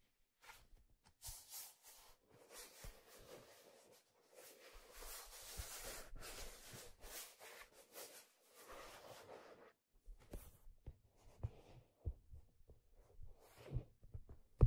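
Fingers rub and scratch over leather close to a microphone.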